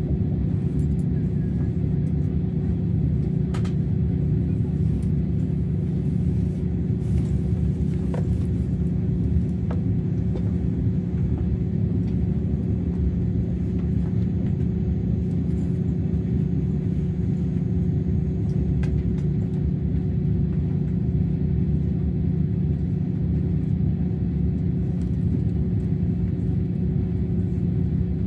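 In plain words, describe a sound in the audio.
A train hums and rumbles steadily as it travels.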